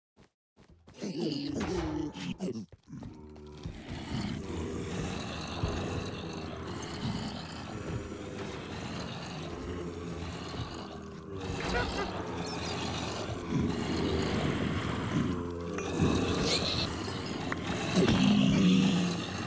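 Zombies groan and moan in low voices.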